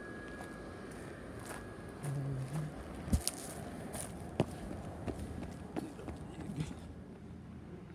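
Footsteps crunch on dry grass and pavement.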